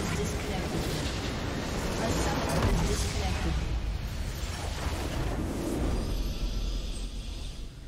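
A game structure explodes with a deep rumbling blast.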